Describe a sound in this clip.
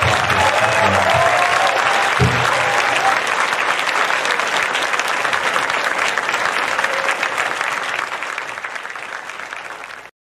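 A crowd applauds and cheers loudly, then fades.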